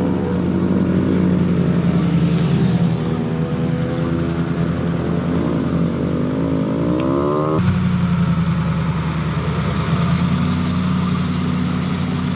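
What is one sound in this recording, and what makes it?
A heavy truck drives off slowly with its engine labouring.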